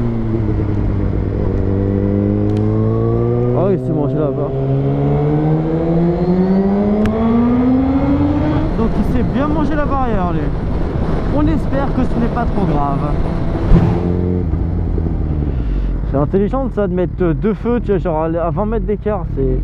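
A motorcycle engine roars and revs up and down as it speeds along.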